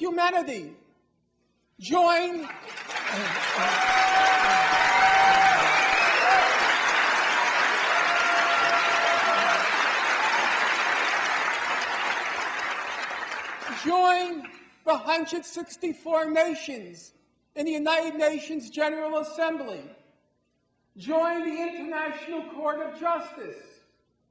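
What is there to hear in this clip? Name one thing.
A middle-aged man speaks forcefully through a microphone.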